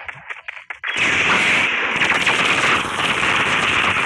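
A magic light beam fires with a loud whooshing blast.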